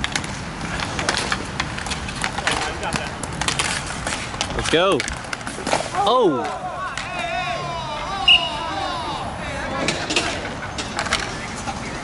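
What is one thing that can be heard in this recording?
Sticks clack and skates scrape on a hard floor.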